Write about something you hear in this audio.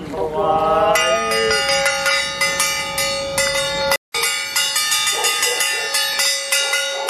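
Cymbals clash and ring in quick repeated strikes.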